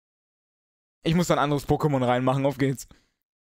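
A short electronic jingle plays.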